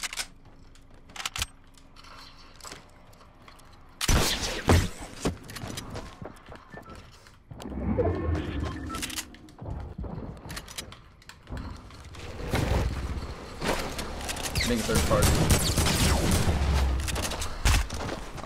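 Building pieces clatter and snap into place in a game.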